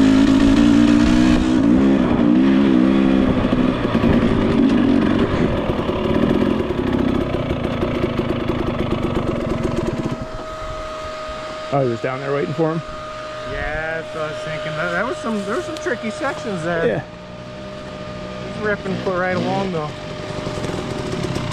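A dirt bike engine rumbles loudly, then settles to a steady idle.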